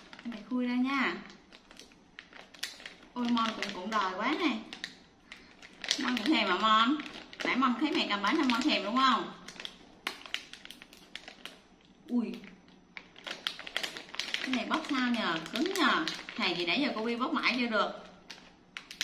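A young woman talks in a high, animated voice close by.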